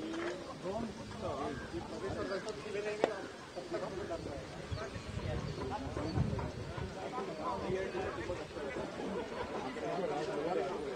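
A group of men talk and call out excitedly nearby, outdoors.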